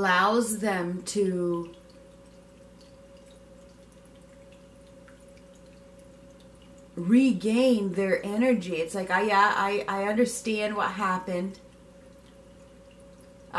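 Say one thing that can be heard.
Water trickles gently down a small fountain.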